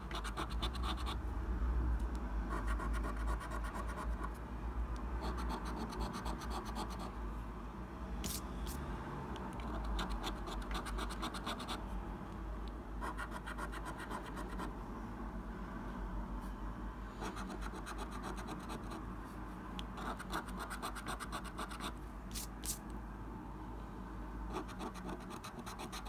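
A coin scrapes rapidly across a scratch card in close bursts.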